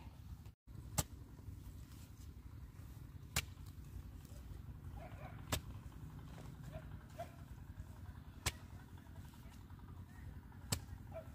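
A hoe strikes and breaks up dry soil with dull thuds.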